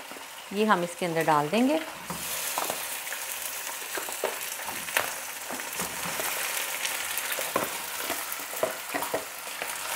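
Pieces of meat drop into a pan with soft thuds.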